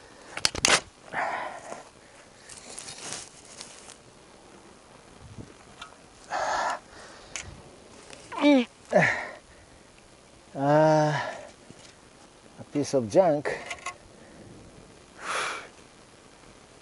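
A shovel scrapes and digs into soil.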